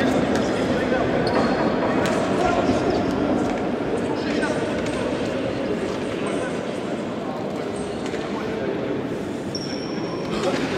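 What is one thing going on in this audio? A man talks urgently to a group of players in a large echoing hall.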